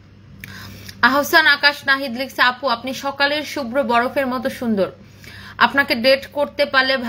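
A young woman speaks close to the microphone with animation.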